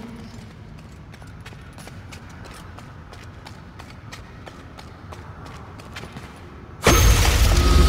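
Footsteps clack steadily on a hard stone floor.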